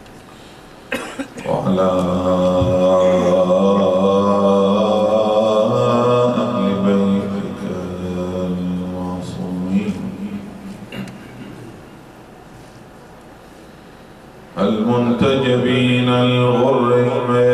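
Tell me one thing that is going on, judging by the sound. A man chants in a long, melodic voice through a microphone.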